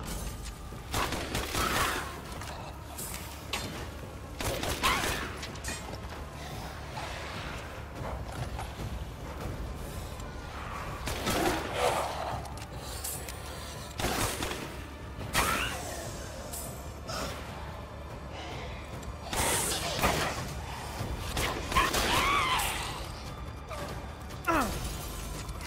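Gunshots fire in sharp bursts, ringing in a large echoing hall.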